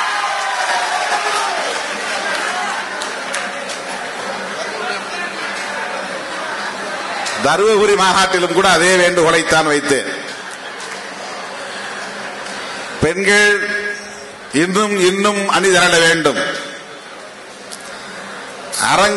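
A middle-aged man speaks forcefully into a microphone, heard through loudspeakers.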